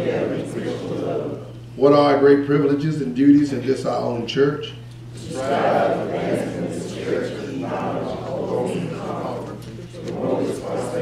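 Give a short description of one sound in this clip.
A congregation of men and women reads aloud together in a room with some echo.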